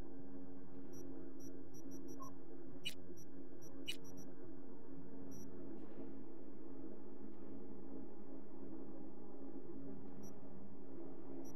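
Short electronic blips sound as menu options are selected.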